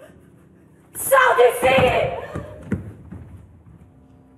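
A young woman screams loudly in fear.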